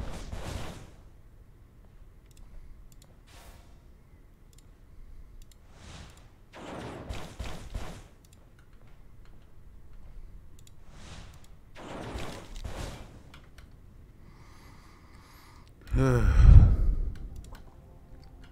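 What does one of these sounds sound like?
Game sound effects whoosh and thud in bursts.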